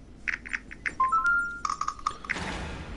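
Keypad buttons beep with short rising electronic tones.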